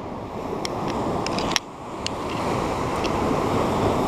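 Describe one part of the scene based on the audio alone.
Sea waves wash and break against rocks.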